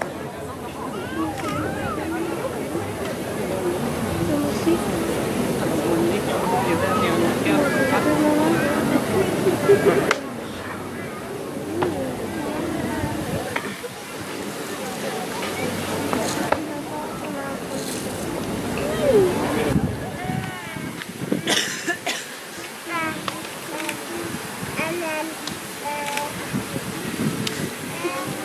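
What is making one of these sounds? Dancers' shoes scuff and tap on paving stones.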